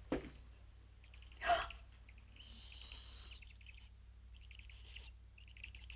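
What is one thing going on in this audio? Newly hatched chicks peep in high, rapid chirps.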